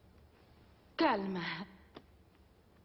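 A woman laughs brightly nearby.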